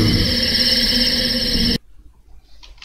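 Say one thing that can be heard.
Loud game music plays, then cuts off suddenly.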